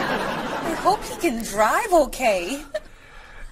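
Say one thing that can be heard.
A young woman speaks worriedly.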